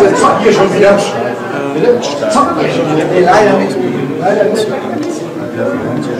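A man talks animatedly to another man nearby.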